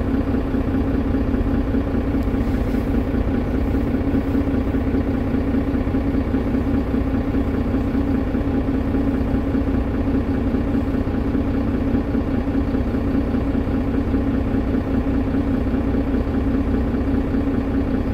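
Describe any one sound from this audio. A bus engine idles with a steady, low rumbling hum.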